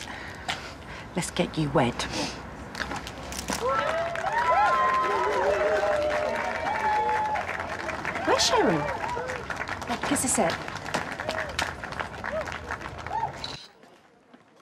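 A crowd claps and cheers loudly outdoors.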